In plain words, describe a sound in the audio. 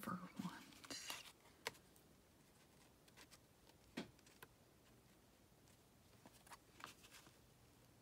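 Paper rustles and taps softly.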